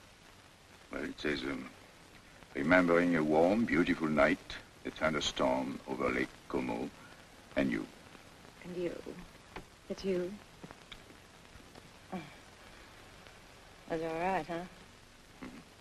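A man speaks smoothly and with charm, close by.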